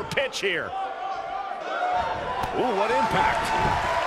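A body slams down hard onto a wrestling ring mat.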